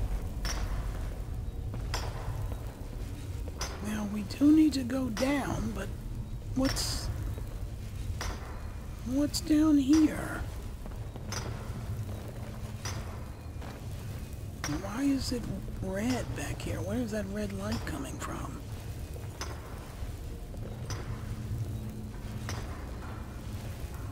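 Magic flames crackle and hum steadily close by.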